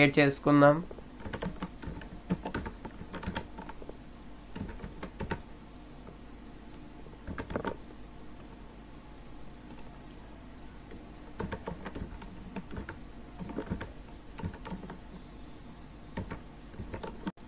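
A keyboard clicks as keys are typed.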